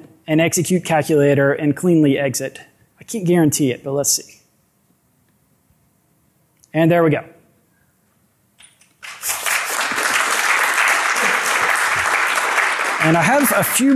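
A young man speaks into a microphone in a large hall, pausing now and then.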